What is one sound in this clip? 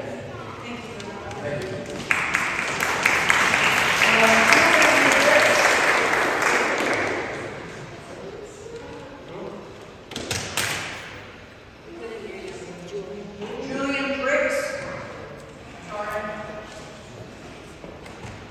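A man speaks in a large echoing hall.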